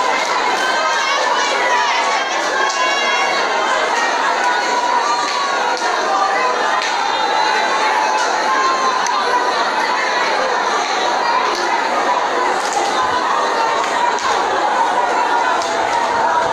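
A crowd of men and women sings loudly together in an echoing room.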